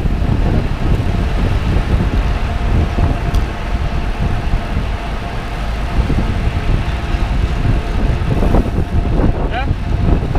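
A lorry engine rumbles close by.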